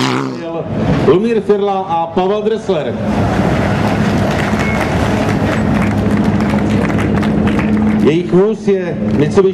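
A car engine revs up and down close by.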